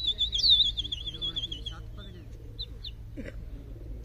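A flock of birds calls as it flies overhead.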